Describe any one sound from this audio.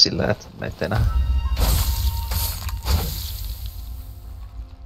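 A blade slashes into flesh with a wet spatter.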